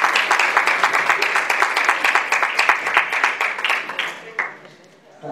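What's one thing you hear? An audience claps rapidly in rhythm.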